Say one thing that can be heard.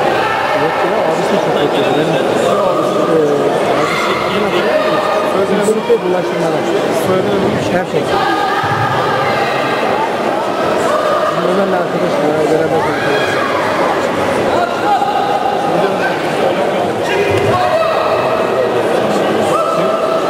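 Many people chatter and talk at once in a large echoing hall.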